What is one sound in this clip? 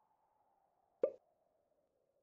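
A short cartoon sound effect thuds once.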